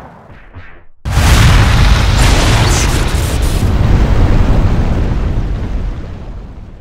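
A flamethrower blasts with a steady roar.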